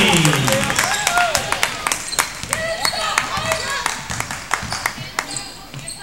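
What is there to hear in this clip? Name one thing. A basketball bounces on a hardwood floor in an echoing gym.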